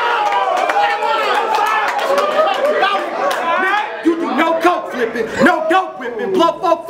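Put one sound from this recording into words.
A man raps loudly and with force, close by.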